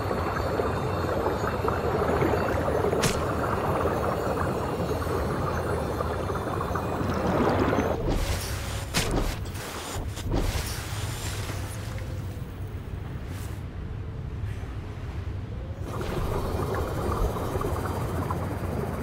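Muffled underwater rumbling drones on steadily.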